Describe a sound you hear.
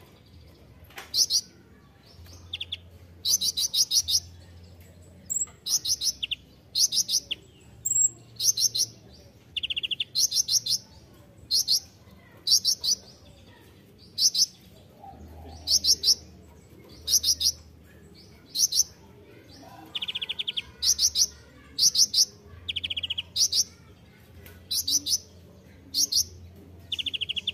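A small bird sings close by in short, high, rapid trilling bursts that repeat every second or two.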